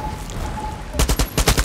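A gun fires several quick shots.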